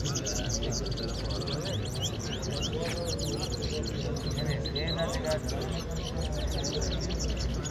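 A crowd of men talks nearby in a low murmur.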